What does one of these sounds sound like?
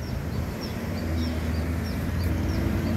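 A motorcycle engine approaches and grows louder.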